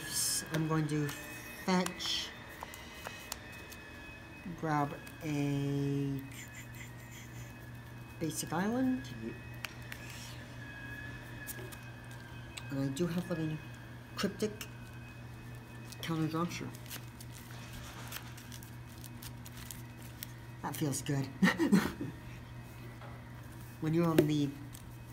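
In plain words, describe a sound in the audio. Playing cards slide and tap softly on a table mat.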